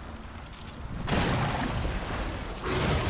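Magical fire bursts up with a roaring whoosh.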